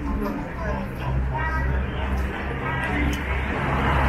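Men and women talk in passing on a busy street.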